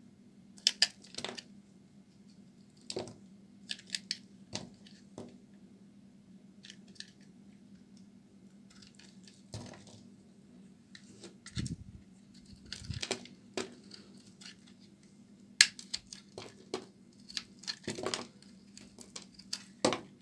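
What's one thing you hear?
A blade scrapes and carves into a bar of soap with crisp crunching sounds.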